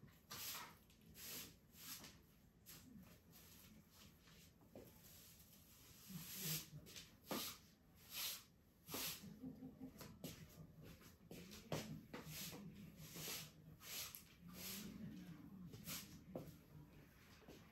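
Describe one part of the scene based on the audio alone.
A broom sweeps across a hard floor with brisk swishing strokes.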